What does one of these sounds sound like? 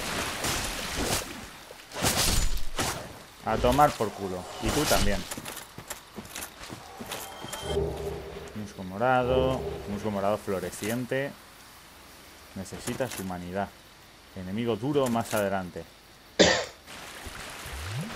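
Armoured footsteps crunch over undergrowth.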